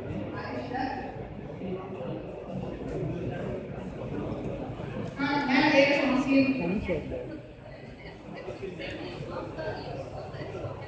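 A woman speaks steadily through a microphone.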